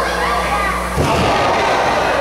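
A wrestler crashes down heavily onto the ring mat.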